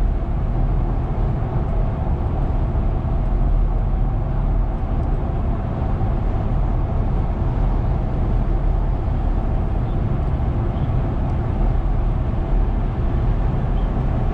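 Road noise rumbles steadily inside a car driving fast on a highway.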